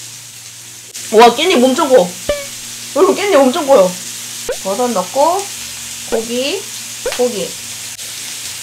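A young woman speaks playfully close to a microphone.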